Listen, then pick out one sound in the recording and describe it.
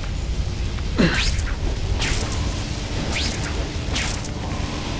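Sharp whooshes swish through the air again and again.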